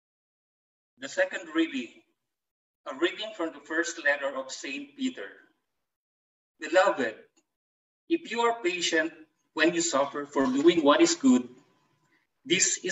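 A middle-aged man reads aloud calmly through an online call.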